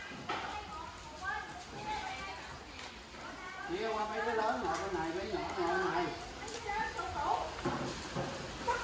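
Fried chicken pieces rustle crisply as tongs pick them up.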